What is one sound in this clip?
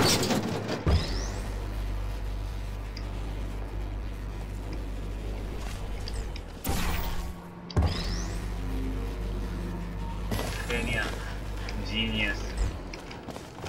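A low electric hum drones steadily while a heavy cube is carried.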